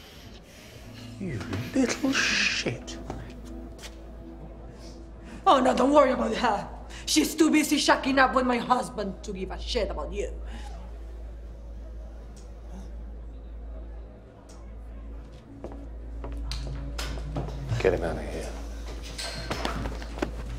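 A young woman speaks tensely close by.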